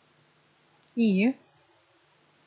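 A young woman briefly makes a short vocal sound close to a microphone.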